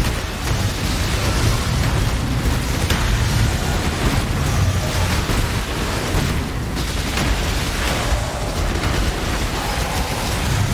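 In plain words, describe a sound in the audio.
A deep rumble of explosions rolls on steadily.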